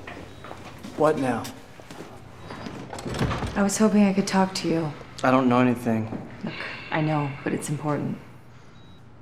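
A woman speaks quietly and tensely nearby.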